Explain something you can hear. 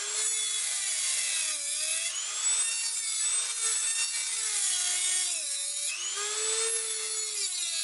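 A small rotary grinder whines at high speed, its pitch dipping and rising as it bites into metal.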